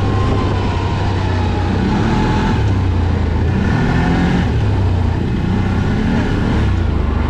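An off-road vehicle engine drones steadily up close, rising and falling as it revs.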